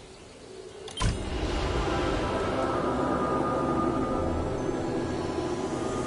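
A full, steady game background sound swells in and plays on.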